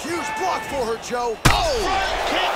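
A punch lands with a sharp thud.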